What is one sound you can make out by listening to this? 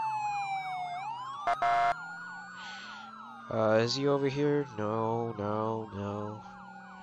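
A police siren yelps rapidly and steadily.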